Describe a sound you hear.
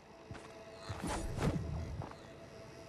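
A pickaxe strikes a tree with loud chopping blows.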